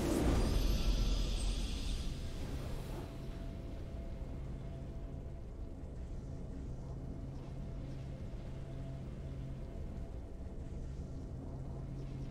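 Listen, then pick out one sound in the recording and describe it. A triumphant game tune swells and then hums softly.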